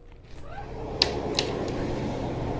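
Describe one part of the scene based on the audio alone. A door swings open with a click.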